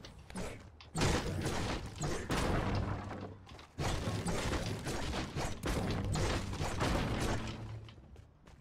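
A pickaxe strikes wood again and again.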